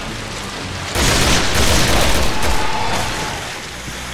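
A large creature splashes and thrashes in water.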